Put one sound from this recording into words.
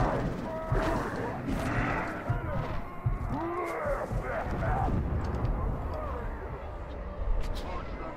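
Monsters grunt and roar as they attack.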